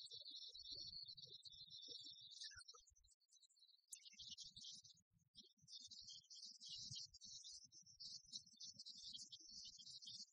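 Rackets strike a shuttlecock back and forth.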